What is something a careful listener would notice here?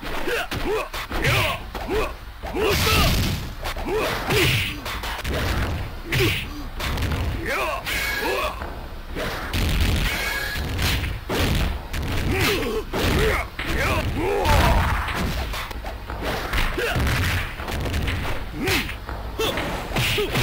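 Punches and kicks land with sharp thuds in a fighting game.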